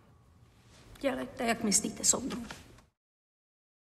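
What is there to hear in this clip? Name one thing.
An elderly woman speaks calmly from a distance.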